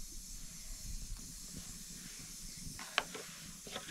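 A spoon scrapes and clinks against a plastic spice box.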